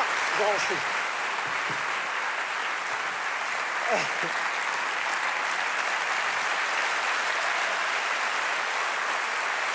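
A large audience applauds steadily in an echoing hall.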